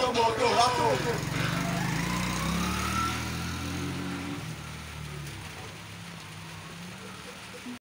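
A motorbike engine revs and pulls away, fading into the distance.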